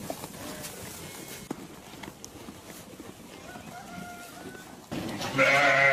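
Sheep munch and chew hay close by.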